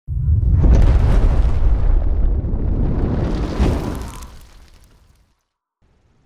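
Fire roars in a loud whoosh and slowly fades.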